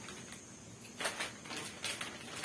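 Plastic wrapping crinkles and rustles.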